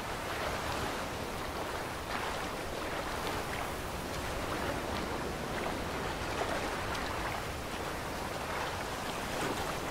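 Waves wash against rocks.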